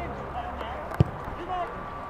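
A football thuds off a boot.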